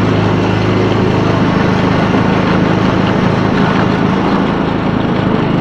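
A riding mower's engine runs loudly and steadily close by.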